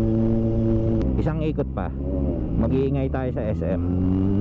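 A motorcycle engine revs up and down in quick bursts.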